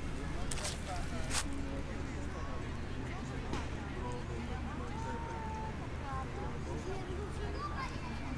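A crowd chatters at a distance outdoors.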